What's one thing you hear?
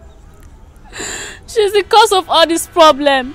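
A young woman speaks tearfully nearby.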